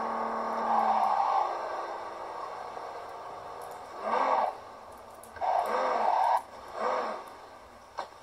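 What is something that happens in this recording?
A car engine revs and roars in bursts.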